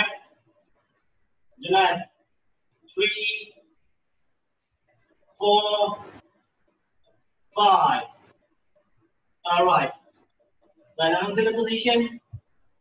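A man calls out short counts over an online call, with pauses between them.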